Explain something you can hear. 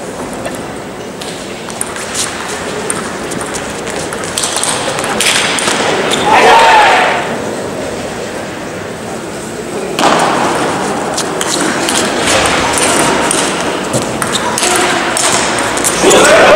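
A table tennis ball clicks back and forth between paddles and a table.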